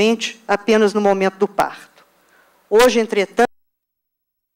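A middle-aged woman speaks into a microphone over a loudspeaker, then stops.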